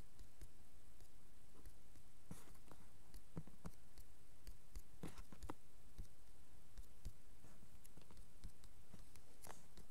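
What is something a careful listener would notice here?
Blocks are placed with soft thuds.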